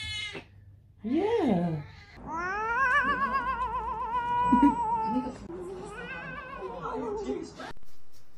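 A cat yowls and growls in long, wavering cries.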